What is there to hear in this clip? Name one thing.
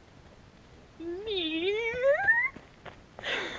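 A young woman calls out close by in a long, rising voice.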